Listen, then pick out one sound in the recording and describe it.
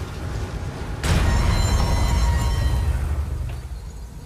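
A heavy wooden door rumbles and creaks as it is pushed open.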